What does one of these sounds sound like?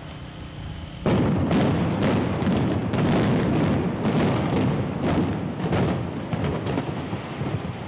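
Explosive charges go off in a rapid series of loud bangs.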